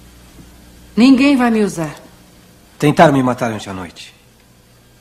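A woman speaks calmly and quietly, close by.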